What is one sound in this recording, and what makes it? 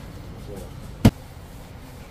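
A body drops onto a soft mattress with a dull thud.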